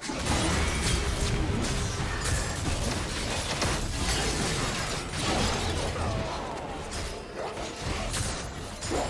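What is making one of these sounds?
Game spell effects crackle and burst during a fight.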